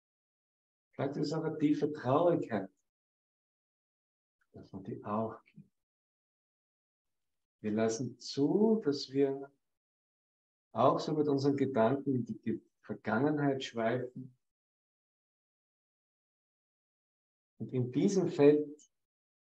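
A man speaks calmly and warmly in short bursts, close to a microphone.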